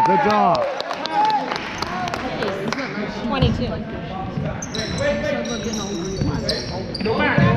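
Young people on the sidelines chatter and call out in a large echoing gym.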